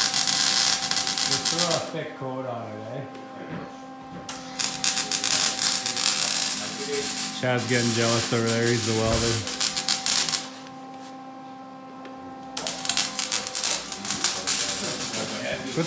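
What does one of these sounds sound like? An arc welder crackles and sizzles loudly in bursts.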